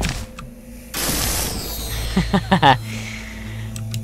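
An object fizzles apart with crackling electric sparks.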